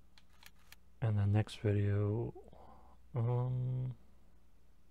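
A young man talks calmly into a microphone, in short bursts.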